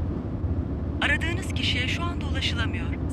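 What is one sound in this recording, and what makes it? A woman's recorded voice speaks through a phone.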